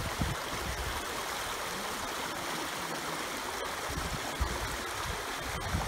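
Water trickles and splashes steadily over stones.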